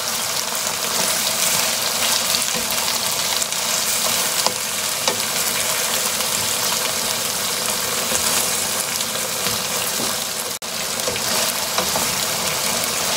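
A spatula scrapes and clatters against a frying pan.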